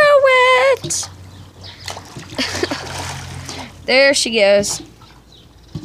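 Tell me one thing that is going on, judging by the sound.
Water splashes as a girl swims.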